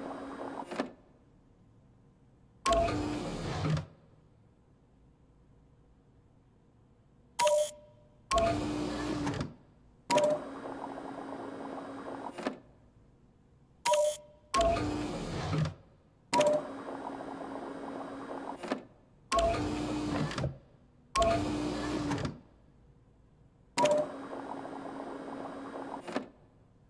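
Liquid pumps and gurgles through tubes in short bursts.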